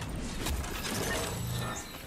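A pickaxe strikes a wooden door with hard knocks.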